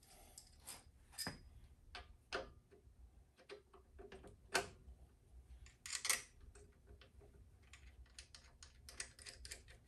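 Metal tools click and tap against a motorcycle engine.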